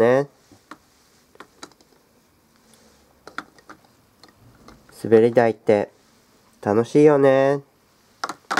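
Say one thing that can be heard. A small plastic toy taps and clicks against a plastic slide.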